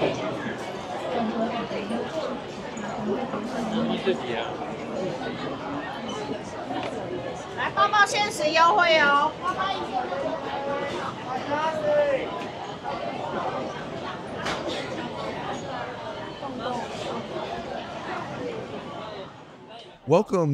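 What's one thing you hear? A crowd murmurs and chatters in a busy indoor space.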